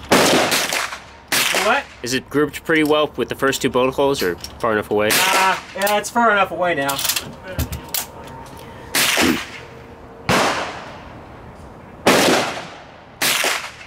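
Rifle shots crack loudly, each followed by an echo rolling away outdoors.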